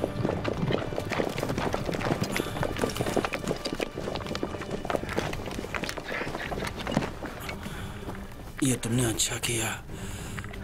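Horse hooves clop on a dirt path.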